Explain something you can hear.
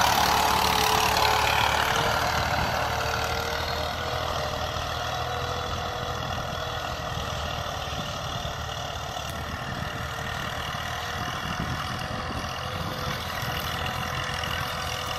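A tractor engine rumbles steadily, loudest at first and slowly fading as it moves away.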